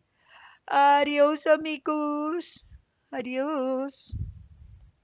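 A woman speaks with animation into a headset microphone, close up.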